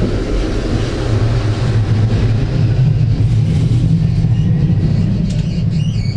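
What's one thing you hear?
Another tram passes close by.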